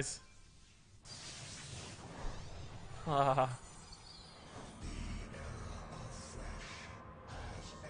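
Game sound effects chime and shimmer as a card is crafted.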